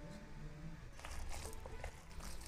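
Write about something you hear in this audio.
Hands squish and stir a wet mixture in a plastic bowl.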